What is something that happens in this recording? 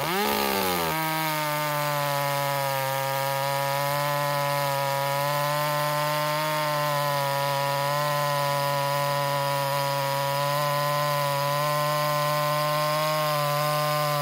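A chainsaw cuts steadily through a thick log with a loud, even drone.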